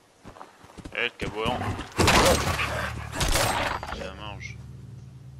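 Heavy blows thud as a weapon strikes a dog.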